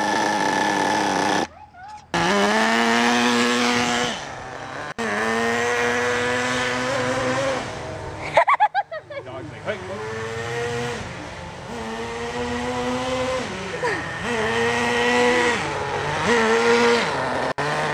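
A nitro engine on a radio-controlled buggy whines high and revs up and down.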